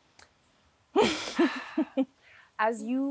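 Another young woman speaks with feeling, close to a microphone.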